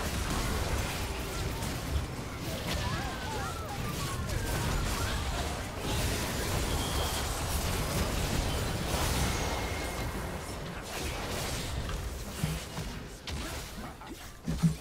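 Fantasy battle sound effects clash and burst rapidly.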